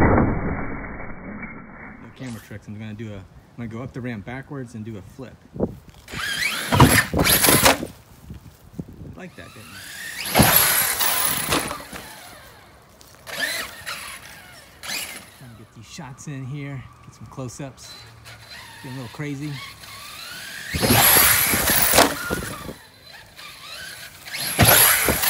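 A toy car's electric motor whines loudly in short bursts.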